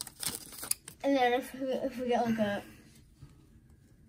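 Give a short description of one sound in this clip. Trading cards slide and click against each other.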